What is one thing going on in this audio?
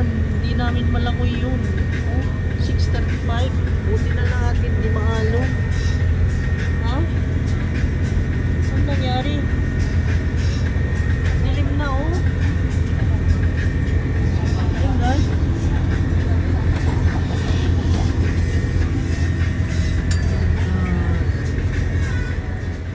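A boat's engine drones steadily and deeply throughout.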